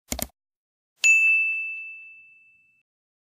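A small bell rings once and fades.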